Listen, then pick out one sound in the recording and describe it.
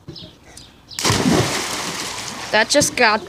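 A girl jumps into a pool with a loud splash.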